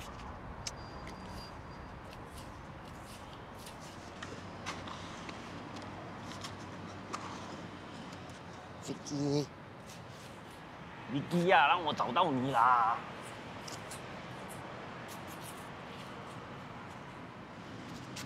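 Hands scrape and dig through sand.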